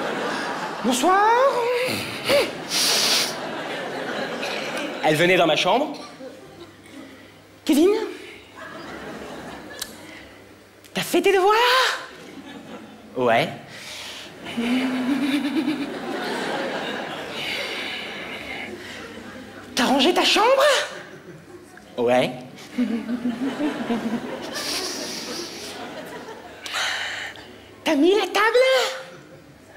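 An audience laughs and applauds in a large hall.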